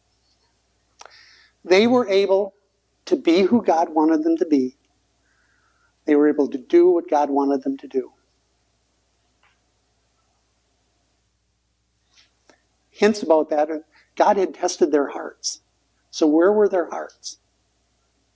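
An elderly man speaks calmly and slowly into a nearby microphone, with pauses.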